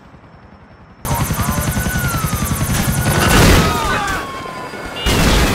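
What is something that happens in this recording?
A helicopter's rotor thumps rapidly overhead.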